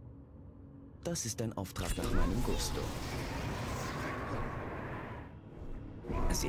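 Magic spells burst and crash in a fight.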